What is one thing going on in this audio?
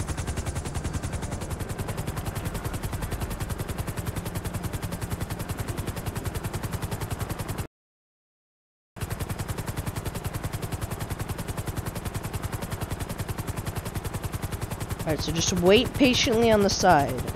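Helicopter rotor blades chop rapidly and steadily.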